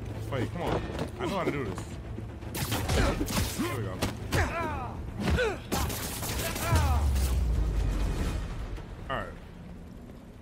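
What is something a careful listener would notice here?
A man talks with animation into a headset microphone.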